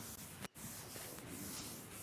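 A board eraser rubs across a blackboard.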